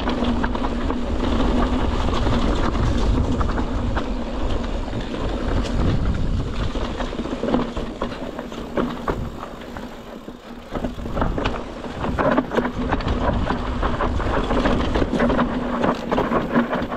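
A bicycle's suspension and chain clatter over bumps.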